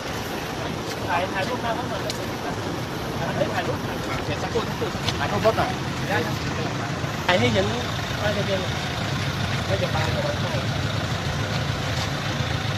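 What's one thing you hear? Men talk outdoors.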